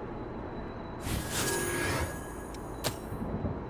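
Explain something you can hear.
A bright shimmering chime rings out once.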